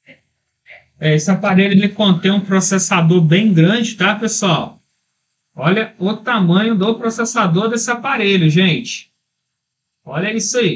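A man talks calmly and clearly into a close microphone.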